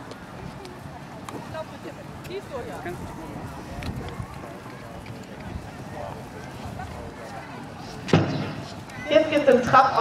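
A horse's hooves thud softly on grass as it trots.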